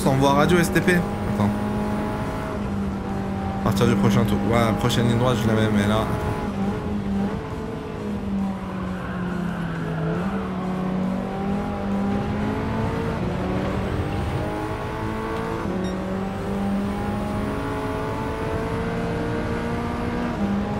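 A racing car engine roars and revs up and down through gear changes.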